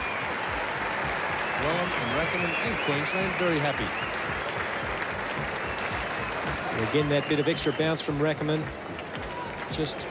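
A crowd murmurs steadily.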